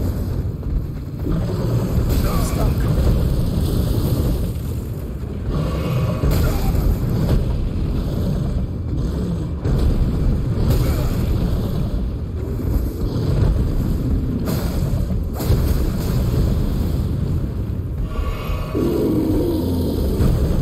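Blades slash and clang in quick strikes.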